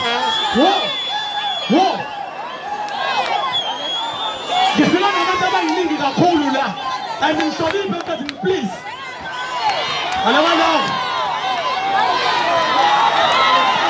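A large crowd cheers and screams loudly outdoors.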